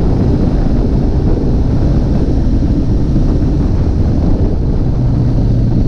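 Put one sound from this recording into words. A motorcycle engine rumbles steadily close by.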